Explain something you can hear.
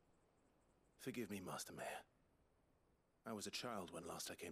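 A young man speaks apologetically.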